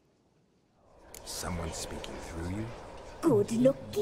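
A man asks a question in a low, gruff voice.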